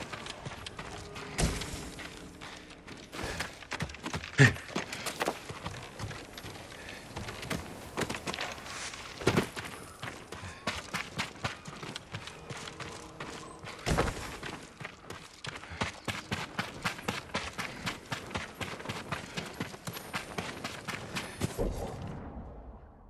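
Footsteps tap quickly on wooden boards and packed earth.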